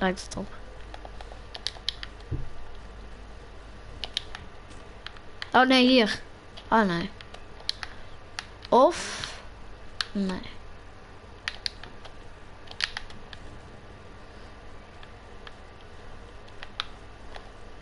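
Sharp clicks and knocks sound in quick bursts.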